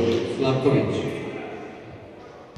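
Spectators talk and call out loudly, then quieten.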